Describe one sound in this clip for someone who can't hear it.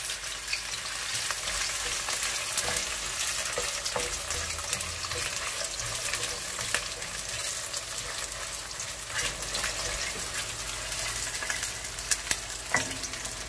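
A wooden spoon scrapes and taps against a metal pan.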